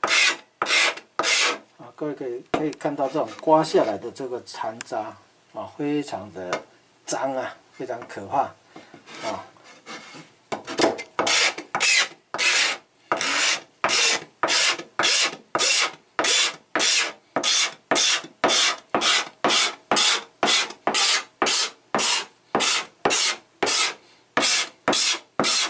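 A metal blade scrapes across a hard board in quick, rhythmic strokes.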